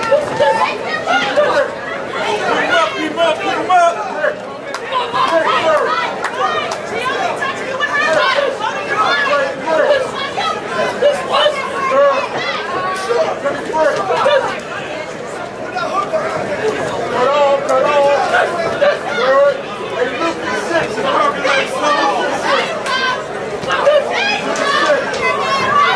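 A crowd shouts and cheers all around in a large echoing hall.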